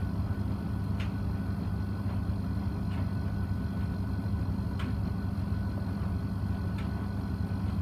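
Items knock against the inside of a washing machine drum.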